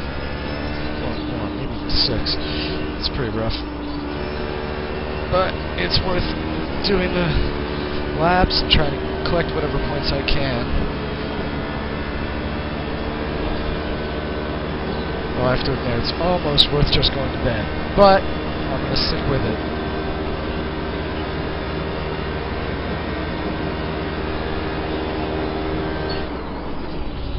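A racing car engine roars through loudspeakers, its pitch rising and dropping with each gear change.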